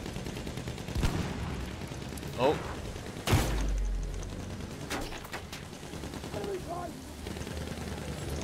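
Machine guns fire in short bursts.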